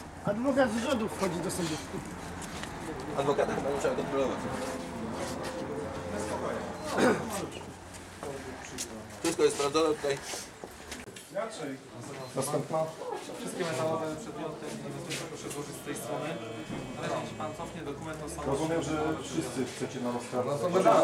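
Several men and women talk over one another nearby in a crowd.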